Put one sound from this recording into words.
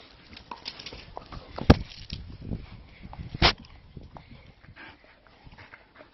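A dog snorts and mouths playfully.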